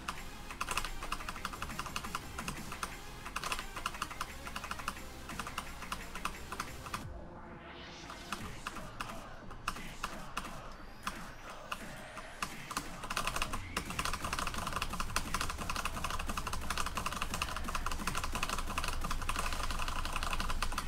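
Keys on a keyboard clack in fast, rapid bursts.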